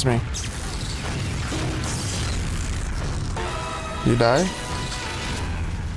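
A flamethrower roars in a game.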